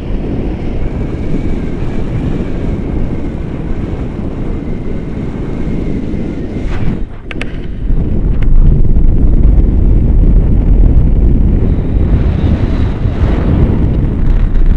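Wind rushes loudly past a microphone outdoors.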